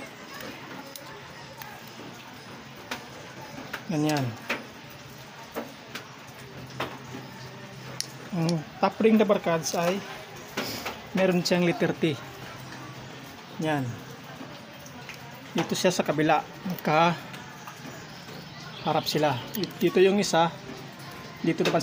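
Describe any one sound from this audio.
Small metal parts click and tap against each other.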